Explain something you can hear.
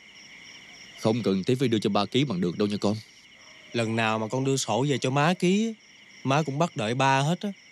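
A young man speaks with distress nearby.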